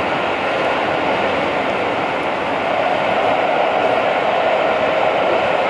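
A train slows as it pulls into a station.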